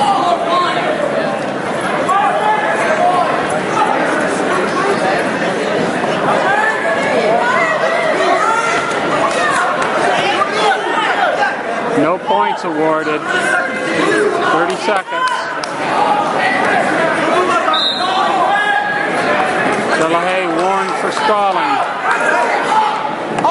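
Men call out loudly from nearby.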